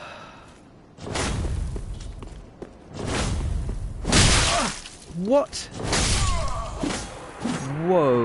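Swords clash and strike in a game fight.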